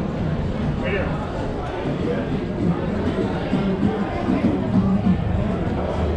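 People chat nearby.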